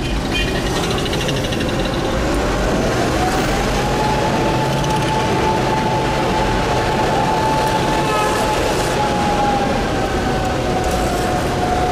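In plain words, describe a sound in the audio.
A diesel armoured military vehicle rumbles as it drives along a street.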